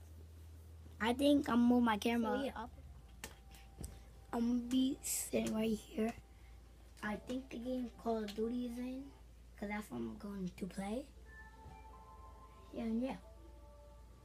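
A young boy talks close by, with animation.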